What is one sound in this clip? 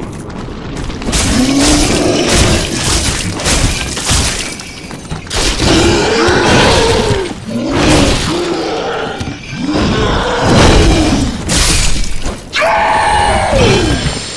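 Metal blades clash and slash in a fight.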